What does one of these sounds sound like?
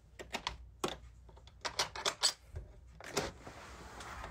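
A hand knocks and taps on a metal door frame.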